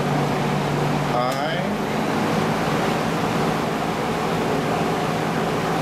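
A window air conditioner hums and blows air steadily.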